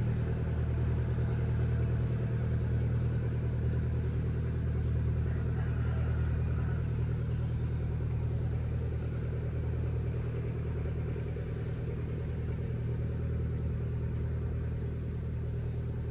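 A river flows past with a steady low rush.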